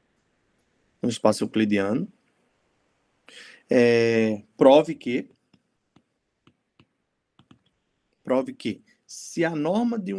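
A young man speaks calmly and slowly, heard through an online call.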